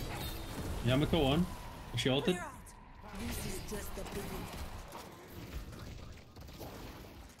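Video game laser weapons fire with electronic zaps and hums.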